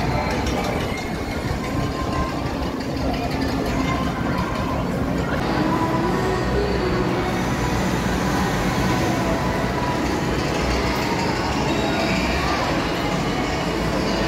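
A crowd chatters and murmurs all around outdoors.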